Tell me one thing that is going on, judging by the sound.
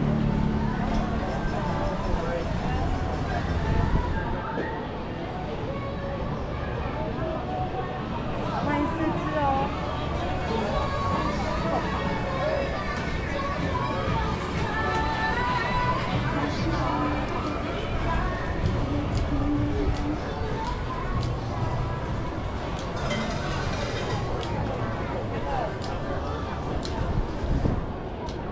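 Men and women chatter at a distance, outdoors.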